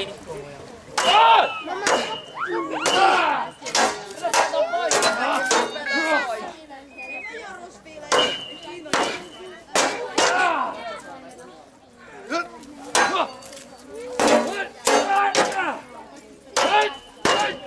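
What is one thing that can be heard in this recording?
Swords clash against shields in sharp metallic clangs.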